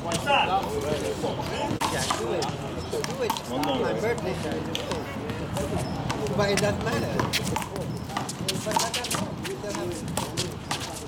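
Young men talk and call out nearby, outdoors.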